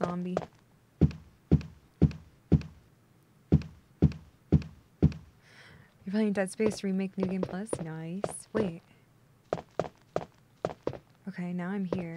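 Footsteps thud steadily on wooden stairs.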